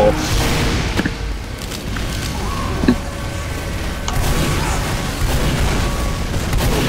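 Gunshots boom in quick bursts.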